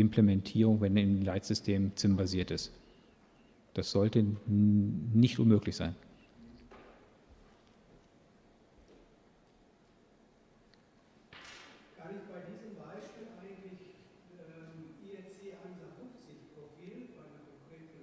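A man speaks into a microphone, heard over loudspeakers in a large echoing hall.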